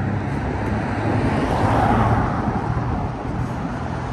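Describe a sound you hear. A car drives past close by, its tyres hissing on the road.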